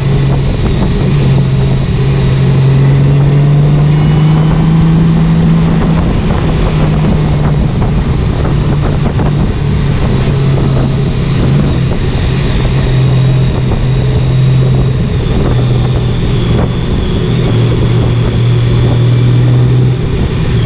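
Wind rushes past a motorcycle rider at speed.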